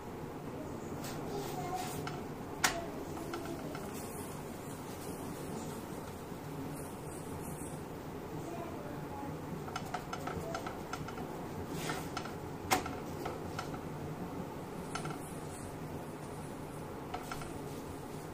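A wooden spatula scrapes and taps against a hot iron griddle.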